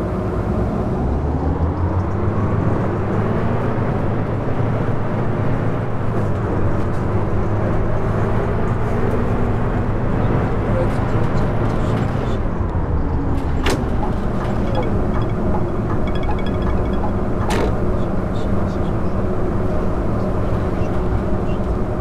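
A diesel city bus engine drones as the bus drives along.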